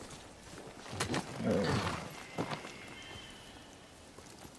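A horse's hooves thud on grass as it gallops.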